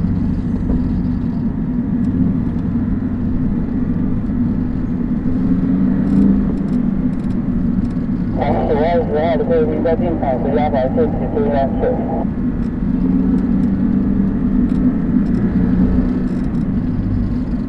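A car engine roars steadily from inside the cabin, rising and falling as the car speeds along.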